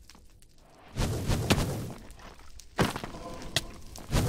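Fireballs whoosh and crackle close by.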